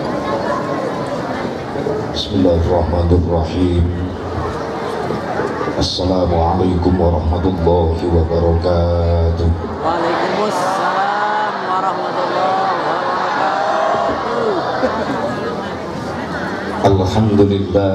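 A middle-aged man speaks with animation through a loudspeaker, echoing outdoors.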